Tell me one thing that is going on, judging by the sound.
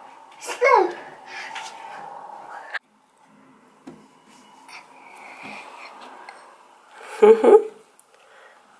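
A toddler squeals and babbles close by.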